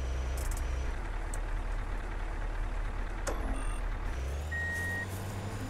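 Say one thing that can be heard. A van engine idles with a low, steady hum.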